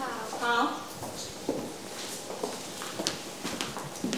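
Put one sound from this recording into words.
Footsteps approach on a hard floor.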